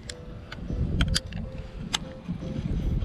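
A fishing reel clicks a few times.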